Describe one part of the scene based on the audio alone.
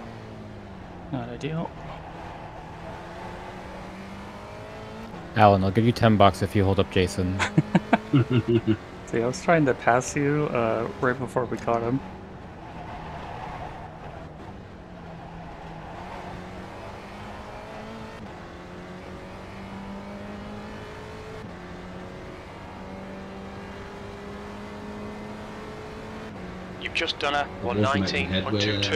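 A racing car engine drones steadily, its pitch rising and falling as the car shifts gears.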